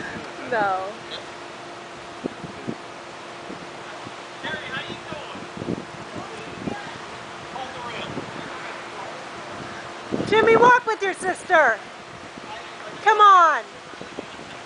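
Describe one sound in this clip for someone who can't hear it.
A woman talks loudly outdoors.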